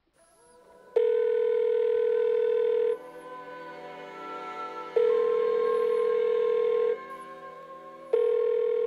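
A phone handset plays loud, steady tones that pause and return.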